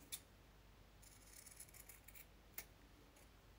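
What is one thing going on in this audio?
Scissors snip through ribbon with quiet clicks.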